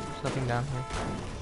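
A pickaxe clangs against a car.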